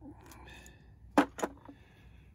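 A metal tool clinks against a hard surface.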